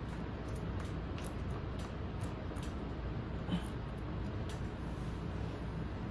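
Scissors snip through cloth.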